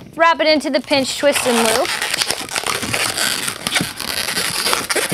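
Rubber balloons squeak and rub as they are twisted.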